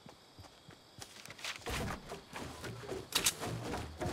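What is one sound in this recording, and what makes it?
Building pieces snap into place with wooden knocks.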